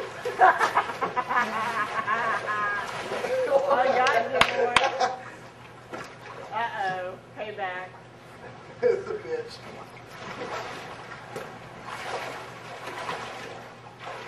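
Water splashes as swimmers move in a pool.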